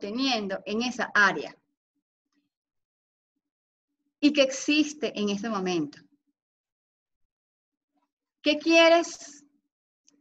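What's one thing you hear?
A young woman speaks calmly through a computer microphone, pausing between phrases.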